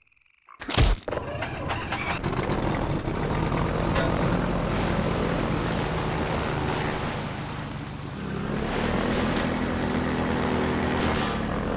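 A boat engine starts with a loud roar and keeps running.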